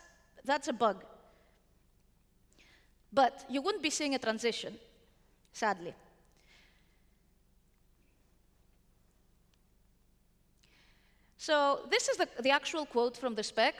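A young woman speaks with animation into a microphone, with pauses.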